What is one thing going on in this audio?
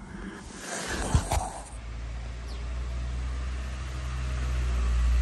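A light wind blows outdoors.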